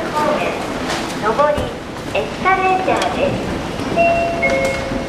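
An escalator runs with a steady mechanical rumble.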